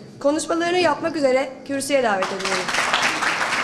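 A young woman speaks calmly into microphones.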